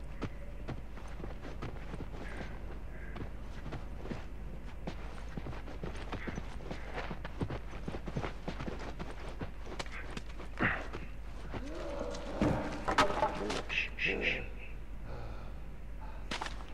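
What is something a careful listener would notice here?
Slow footsteps tread on a hard floor.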